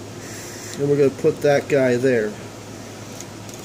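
A cable plug clicks into a socket.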